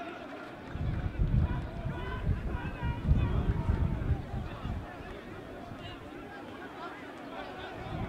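A crowd of men argue and shout outdoors at a distance.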